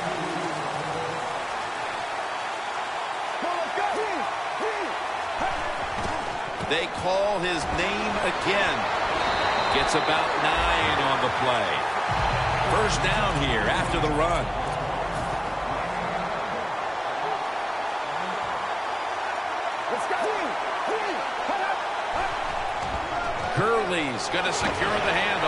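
A stadium crowd cheers and roars steadily, swelling louder for a while.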